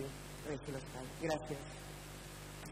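A woman speaks briefly through a microphone in a large echoing hall.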